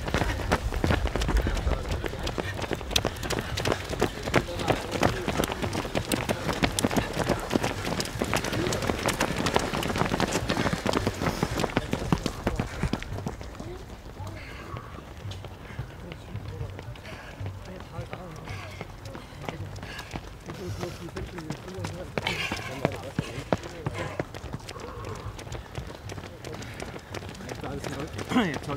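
Many runners' footsteps patter on a paved path.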